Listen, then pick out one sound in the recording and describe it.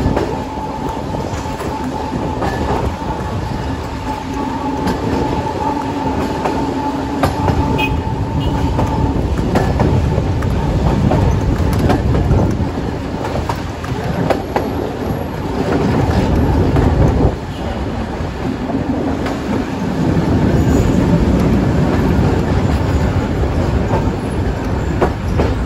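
A tram rumbles and rattles along its rails.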